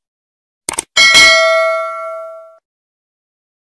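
A bell rings brightly and fades.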